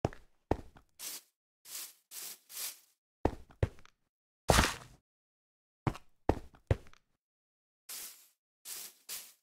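Footsteps crunch and rustle through tall grass in short bursts.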